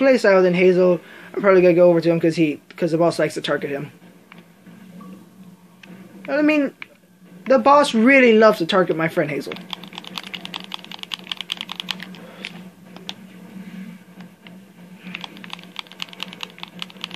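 Video game sound effects play from a television speaker.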